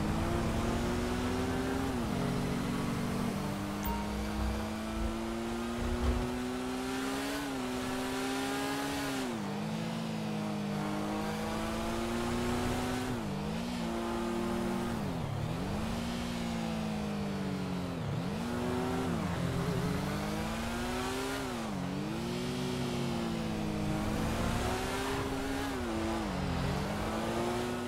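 A motorcycle engine revs up and down as the bike speeds along.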